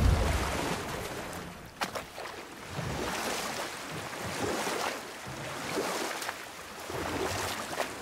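Oars splash rhythmically in water.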